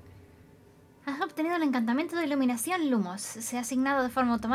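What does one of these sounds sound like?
A young woman talks with animation into a microphone.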